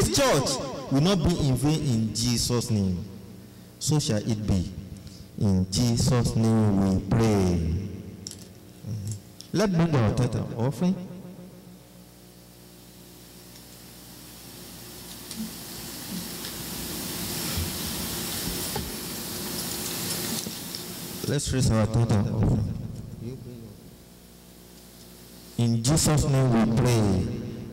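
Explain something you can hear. A man preaches loudly and with passion through a microphone in an echoing room.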